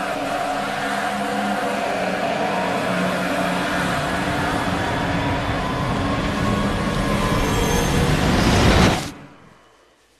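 A loud roaring blast rumbles and swirls.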